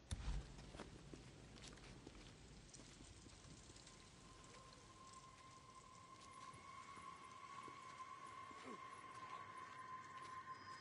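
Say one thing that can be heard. Footsteps scuff softly on concrete.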